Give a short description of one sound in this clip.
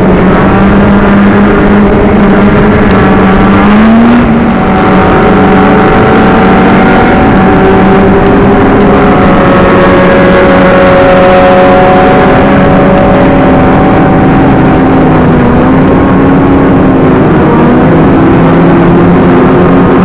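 Several motorcycle engines roar loudly and close by, their pitch rising and falling as they rev.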